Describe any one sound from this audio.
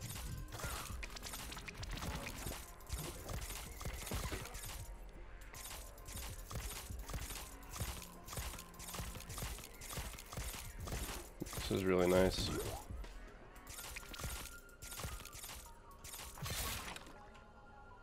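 Rapid game gunshots pop repeatedly.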